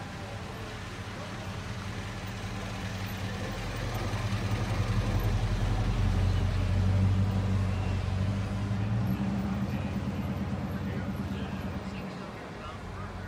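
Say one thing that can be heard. A car engine rumbles deeply nearby as the car rolls slowly past.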